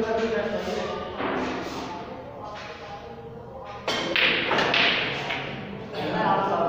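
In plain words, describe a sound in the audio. Men talk nearby in a room with some echo.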